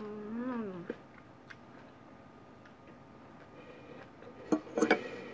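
A fork and spoon clink against a plate.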